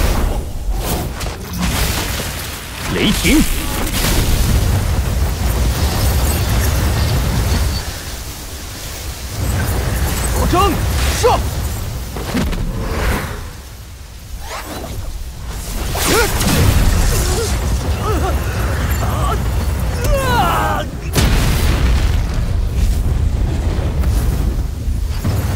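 Magical energy blasts roar and crackle with deep rumbling.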